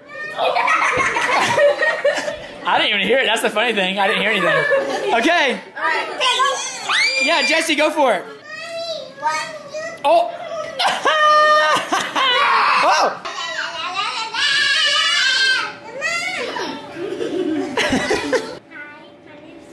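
Young girls talk, squeal and laugh excitedly close by.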